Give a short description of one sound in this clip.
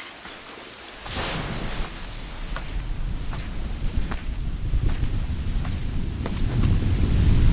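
Wind gusts loudly outdoors.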